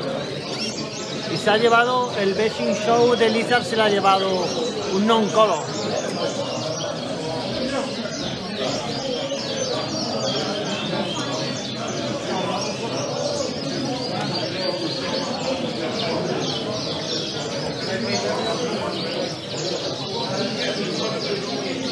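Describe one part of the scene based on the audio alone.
Many canaries chirp and trill all around, close by.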